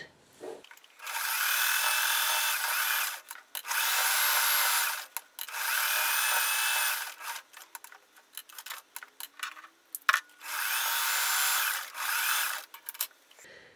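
A sewing machine whirs in quick bursts, stitching fabric.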